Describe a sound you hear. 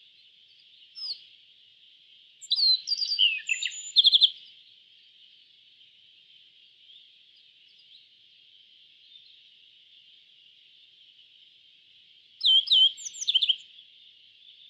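A small bird sings short bursts of bright, high chirping notes.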